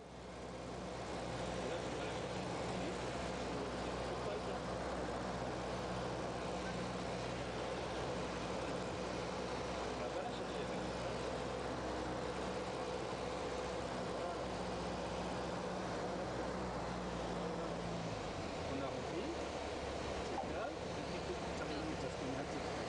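A small plane's engine drones steadily in the cockpit, heard from up close.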